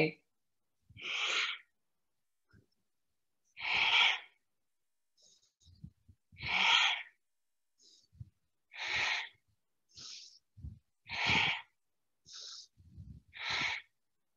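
A woman breathes in and out deeply and slowly.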